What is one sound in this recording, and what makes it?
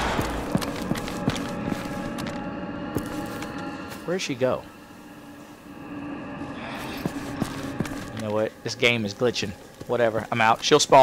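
Heavy boots thud on a hard floor.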